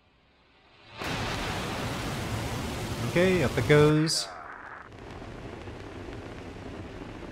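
A rocket engine ignites and roars.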